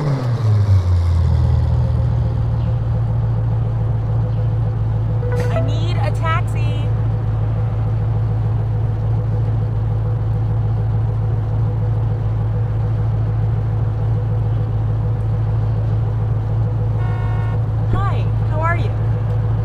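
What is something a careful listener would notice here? A car engine idles with a steady low hum.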